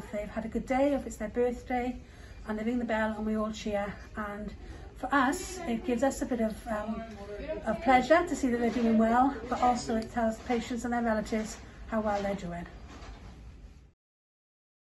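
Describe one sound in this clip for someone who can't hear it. A woman speaks calmly and clearly, close to the microphone.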